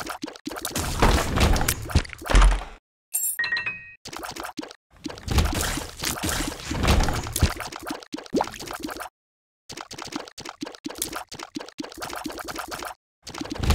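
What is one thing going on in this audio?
Game creatures squelch and burst as they are hit.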